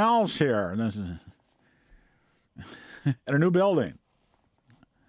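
An elderly man talks calmly into a close microphone.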